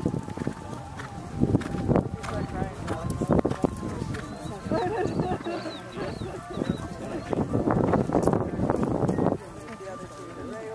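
A horse trots on sand, its hooves thudding dully.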